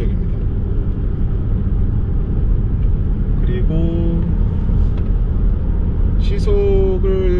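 Tyres rumble steadily on the road as a car drives along.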